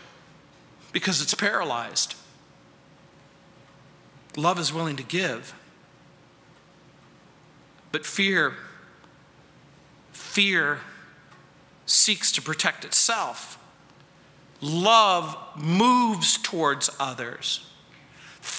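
A middle-aged man speaks slowly and expressively through a microphone, with long pauses.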